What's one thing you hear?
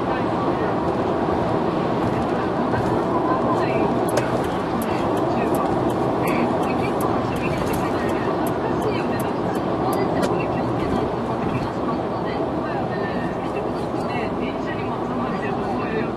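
A car's engine hums steadily and tyres roar on the road from inside the car.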